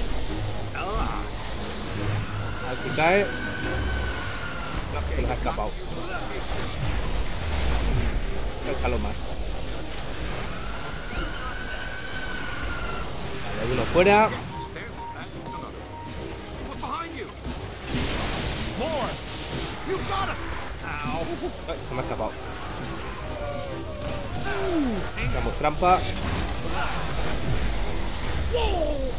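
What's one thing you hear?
Energy beams crackle and buzz.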